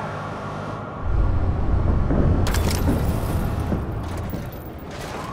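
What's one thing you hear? A car engine roars loudly as the car speeds away.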